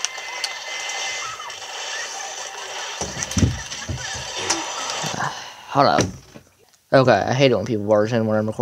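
Video game sound effects and music play from a small handheld speaker.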